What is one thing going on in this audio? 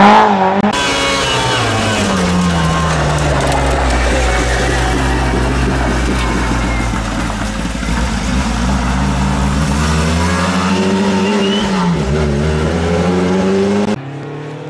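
A rally car engine roars loudly, revving up and down as the car speeds past and away.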